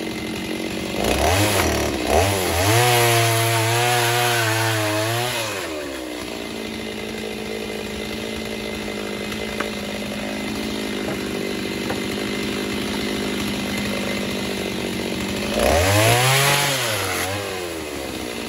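A chainsaw revs loudly in short bursts.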